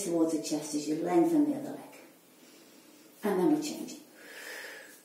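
An older woman speaks calmly and clearly, close to a microphone.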